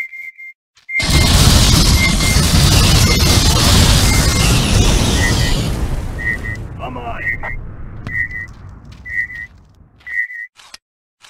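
A flamethrower roars loudly and crackles.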